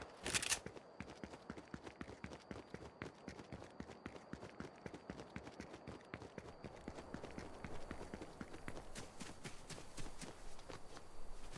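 Quick footsteps run over grass.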